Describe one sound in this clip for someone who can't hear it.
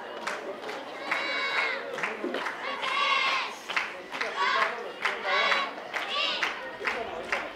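A group of young women shouts cheers in unison, heard from a distance outdoors.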